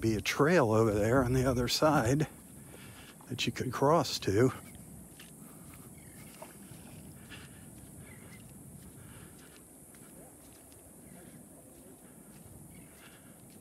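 Small waves lap gently at a sandy shore.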